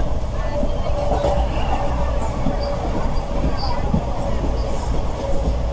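A passing train roars by on the next track.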